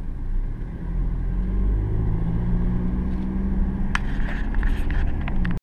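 A car engine hums steadily from inside the cabin, rising as the car speeds up.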